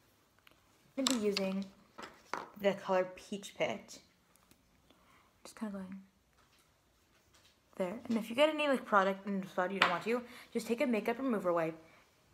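A young woman talks close by, calmly and casually.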